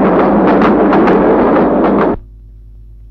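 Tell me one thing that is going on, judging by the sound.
A train rumbles past loudly.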